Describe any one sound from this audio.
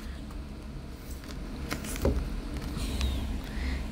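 Playing cards rustle and flick as they are handled.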